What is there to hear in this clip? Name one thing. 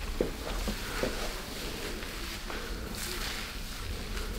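Hands rub and pat softly on skin.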